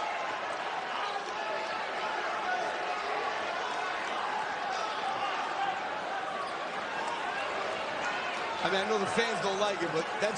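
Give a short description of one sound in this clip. A large indoor crowd murmurs and chatters in an echoing arena.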